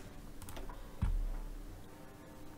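A game menu clicks open with a soft thump.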